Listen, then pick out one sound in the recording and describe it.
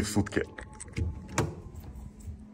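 A door knocks and creaks open.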